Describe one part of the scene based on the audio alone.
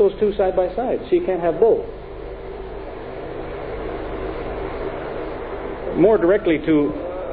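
A man speaks calmly into a microphone, in short phrases with a pause.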